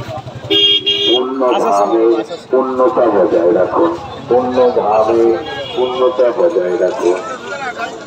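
A man talks nearby in a lively way.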